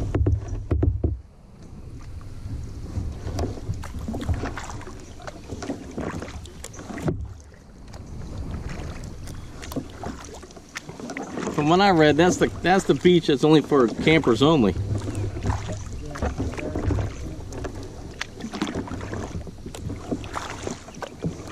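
Small waves lap against a kayak hull.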